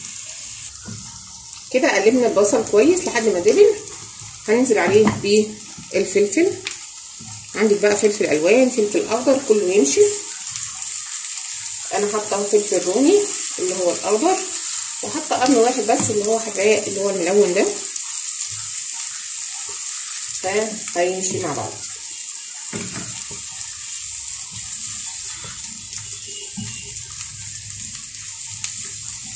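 A spatula scrapes and stirs against a pan.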